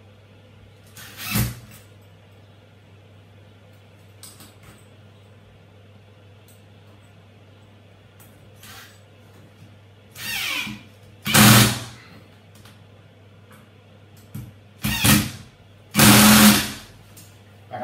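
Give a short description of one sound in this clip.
A power drill whirs in short bursts into a wall.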